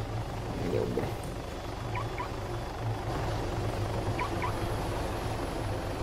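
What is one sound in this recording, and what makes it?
A helicopter's rotor drones low and steadily.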